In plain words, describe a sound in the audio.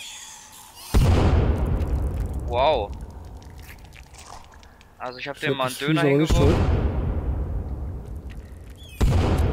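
A burst of fire whooshes and crackles.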